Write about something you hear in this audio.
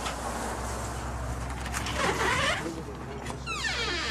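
A front door latch clicks and the door swings open.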